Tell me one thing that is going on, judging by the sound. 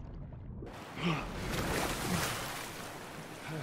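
A man gasps and shouts with strain.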